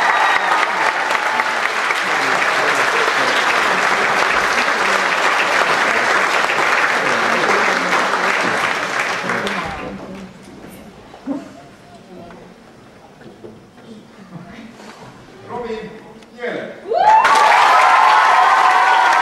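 A crowd of children cheers.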